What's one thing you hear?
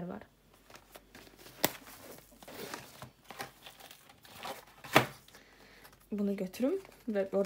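A fabric pouch rustles and crinkles as hands handle it.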